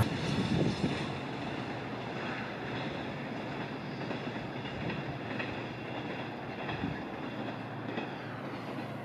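Train wheels squeal on the curved rails.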